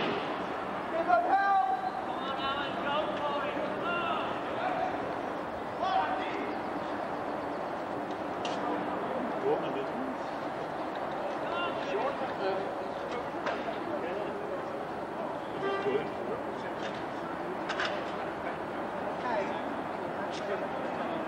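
A crowd of spectators cheers outdoors.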